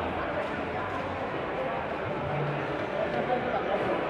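Darts thud into an electronic dartboard in a large echoing hall.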